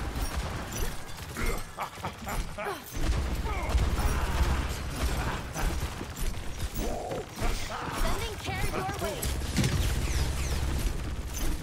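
Explosions from a video game boom.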